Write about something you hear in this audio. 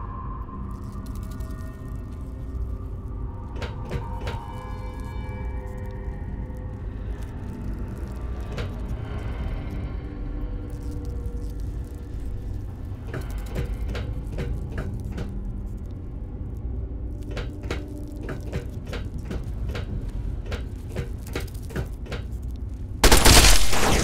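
Footsteps clank on metal walkways.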